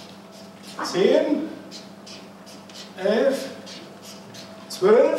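A marker squeaks and scratches on paper in short strokes.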